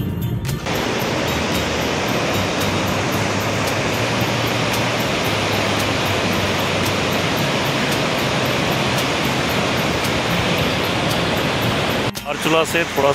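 A rushing river roars loudly over rocks.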